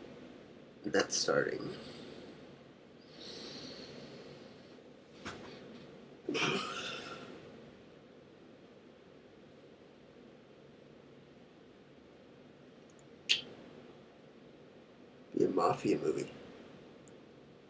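A young man speaks briefly and casually close by, in short bursts.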